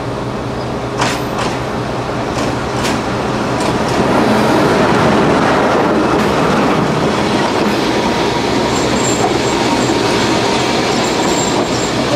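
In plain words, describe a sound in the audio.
Train wheels clatter and click over the rail joints.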